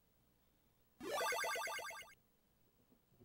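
A short rising chiptune jingle plays.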